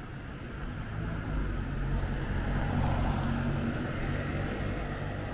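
A motor scooter engine hums past close by.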